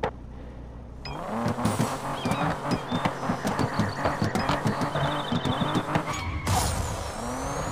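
A sports car engine revs hard again and again.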